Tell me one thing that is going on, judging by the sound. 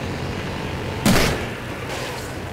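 A loud explosion booms nearby.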